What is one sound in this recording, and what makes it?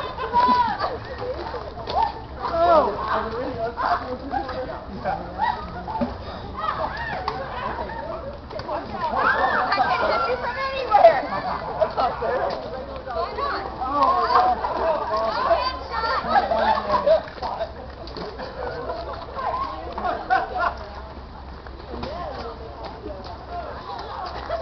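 A crowd of children and adults shout, squeal and laugh outdoors.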